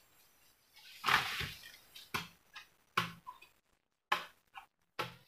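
Bamboo knocks and clatters.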